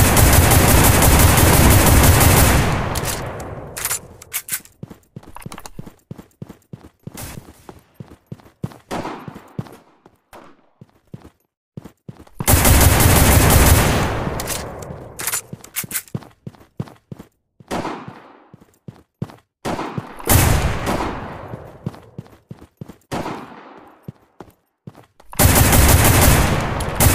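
A rifle fires loud rapid bursts at close range.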